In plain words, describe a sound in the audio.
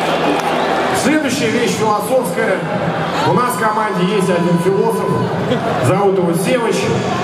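A man speaks into a microphone through loud speakers, echoing in the hall.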